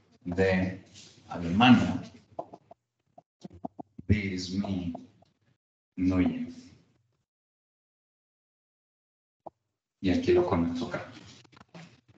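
A man speaks calmly in short phrases, with pauses.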